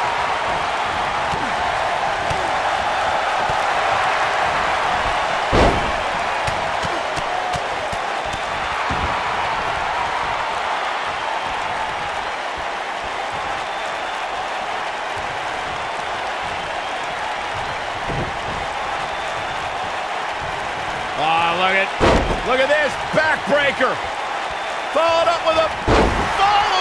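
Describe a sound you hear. A large crowd cheers and murmurs steadily.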